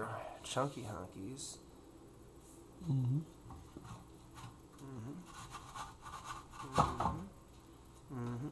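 A knife saws through a crusty loaf.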